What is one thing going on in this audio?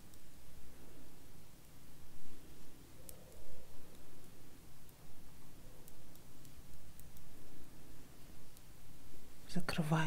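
Metal knitting needles click and tap softly.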